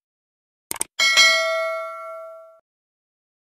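A bell chimes brightly and rings out.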